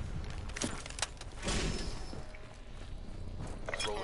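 Guns fire in short, sharp bursts.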